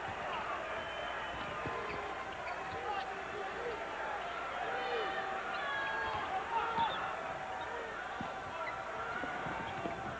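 A basketball thumps as it is dribbled on a wooden floor.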